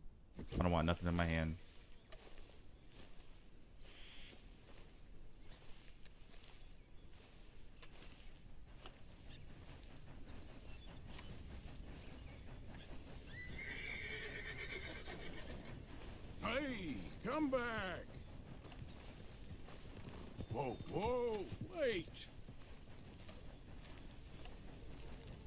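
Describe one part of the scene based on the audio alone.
A man's footsteps crunch softly on grass and dirt.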